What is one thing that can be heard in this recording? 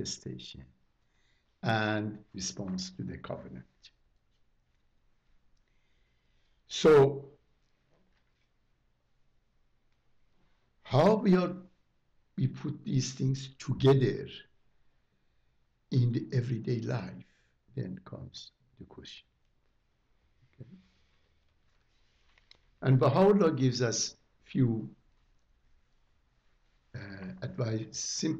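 An elderly man speaks calmly and slowly, with long pauses.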